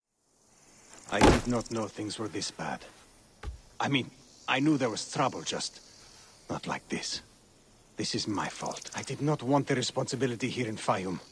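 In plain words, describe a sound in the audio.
A middle-aged man speaks in a calm, low voice.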